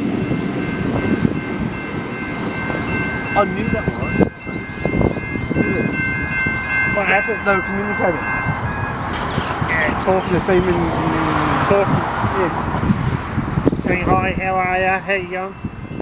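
A train approaches slowly with a low rumble.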